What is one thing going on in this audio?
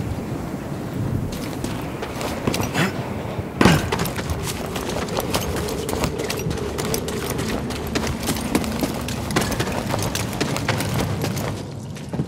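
Footsteps crunch on stone and grass.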